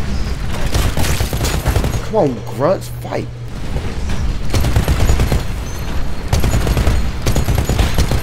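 A heavy gun fires rapid bursts with loud booms.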